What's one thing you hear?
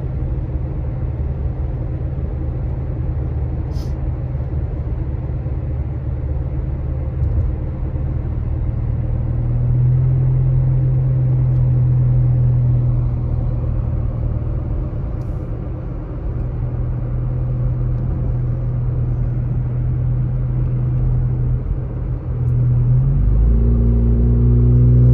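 Tyres roll on smooth asphalt with a low rumble.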